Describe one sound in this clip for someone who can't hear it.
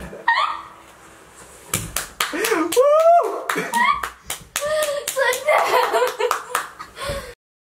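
A young man laughs and talks excitedly close to a microphone.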